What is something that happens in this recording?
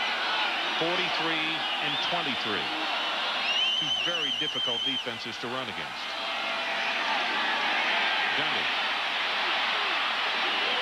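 A large crowd cheers and roars outdoors, growing louder during the run.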